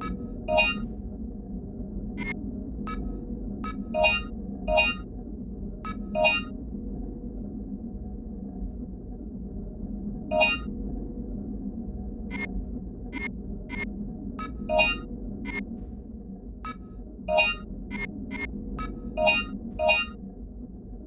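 Short electronic beeps from a video game menu sound as the selection moves.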